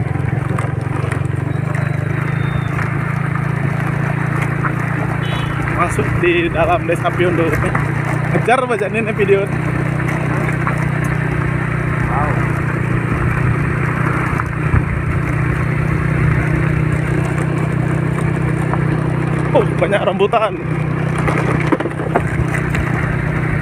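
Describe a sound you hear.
Tyres rumble over a gravel road.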